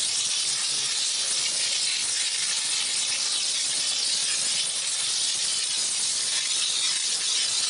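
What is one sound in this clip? A steam cleaner hisses steadily as it sprays a car.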